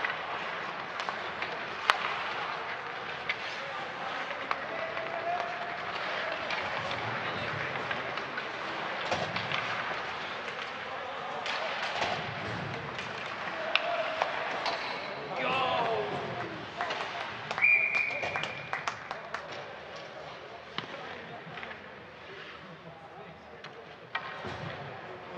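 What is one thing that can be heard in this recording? Sticks click and knock against the puck.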